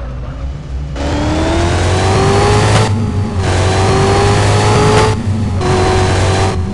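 A car engine revs up, climbing in pitch and dropping back at each gear change.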